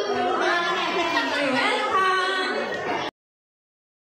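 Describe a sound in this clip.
A middle-aged woman laughs into a microphone.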